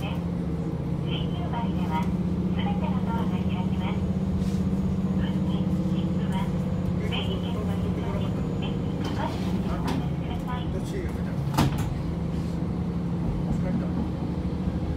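A train rumbles steadily along the tracks with a low engine drone.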